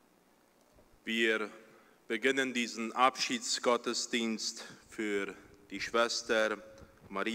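A young man speaks calmly into a microphone in an echoing hall.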